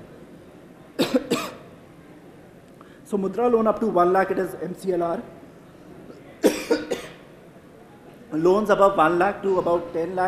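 A young man speaks calmly into a microphone, heard through a loudspeaker, pausing between phrases.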